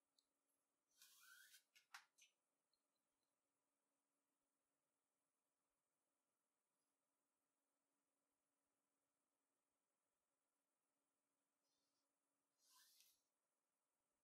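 Nylon paracord rustles and swishes as strands are pulled tight through a braid.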